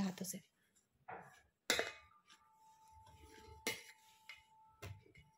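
A hand rubs flour softly in a metal bowl.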